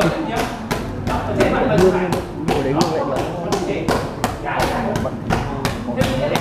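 Kicks thud rapidly and steadily against a padded bag.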